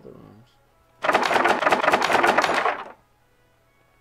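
A locked door rattles loudly as its handle is tried.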